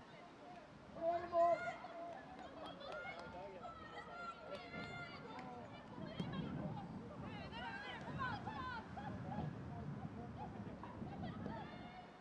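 Players call out to each other on a field outdoors.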